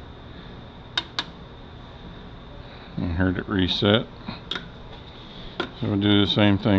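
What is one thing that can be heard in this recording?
Small metal parts click and clink as they are handled.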